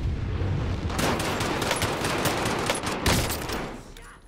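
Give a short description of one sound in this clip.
Pistol shots ring out in a video game.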